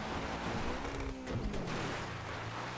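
A car crashes with a loud crunch.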